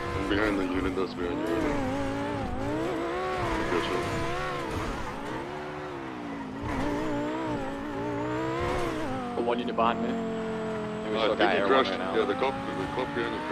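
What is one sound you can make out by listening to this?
A sports car engine roars, revving up and down.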